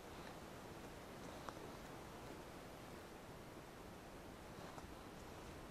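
Feathers rip softly as a bird is plucked by hand.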